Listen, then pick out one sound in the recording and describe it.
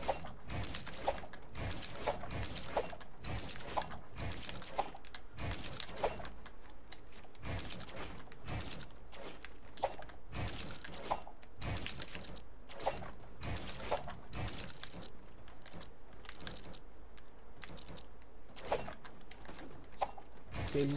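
Wooden building pieces snap into place with quick, sharp clattering knocks.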